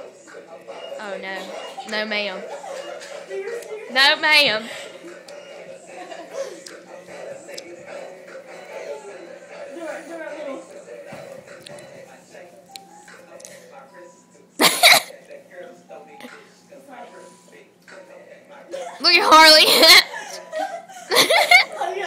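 Young girls laugh loudly nearby.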